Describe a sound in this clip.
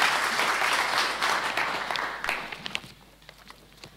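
An audience applauds in a large hall, then the clapping dies away.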